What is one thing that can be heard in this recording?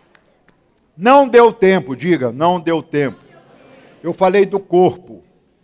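An older man speaks calmly into a microphone in an echoing hall.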